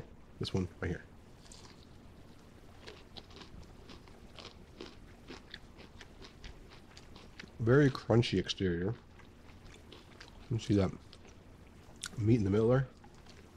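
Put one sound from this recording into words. A man chews crunchy food close to a microphone.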